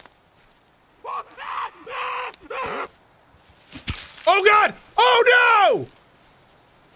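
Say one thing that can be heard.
A man talks loudly and with animation into a close microphone.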